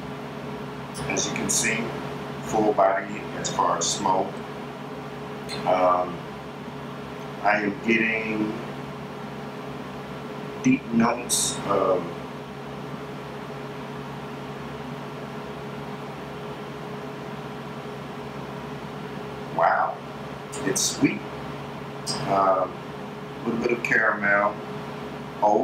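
A middle-aged man speaks calmly in short phrases close to the microphone.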